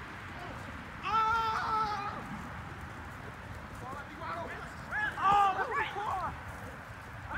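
Young people shout to each other across an open field, heard from a distance.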